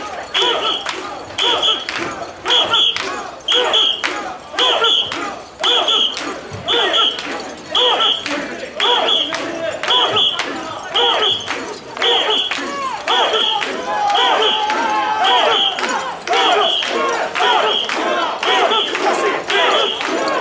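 A crowd murmurs and calls out nearby.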